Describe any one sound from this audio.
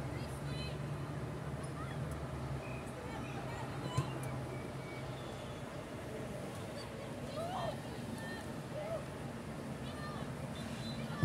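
Players shout to each other far off.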